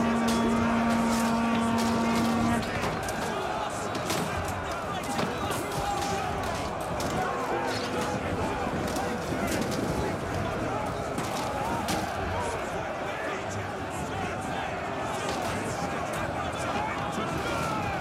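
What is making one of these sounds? Swords and shields clash and clang repeatedly.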